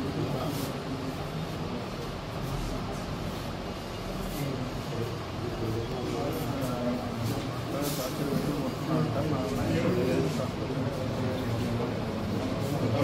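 Several men talk at once nearby.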